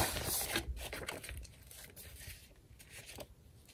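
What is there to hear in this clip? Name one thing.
Fingers rub and smooth paper with a soft scraping.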